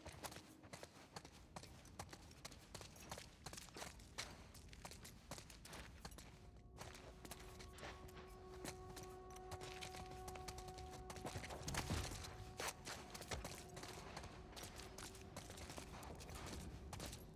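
Footsteps scuff slowly across a gritty floor.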